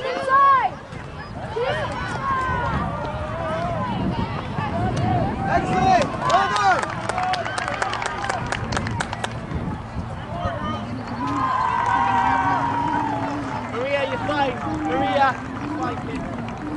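Players shout and call out to each other across an open field outdoors.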